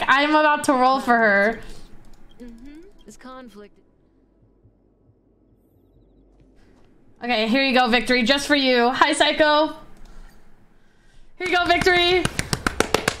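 A young woman talks animatedly in a high voice, close to a microphone.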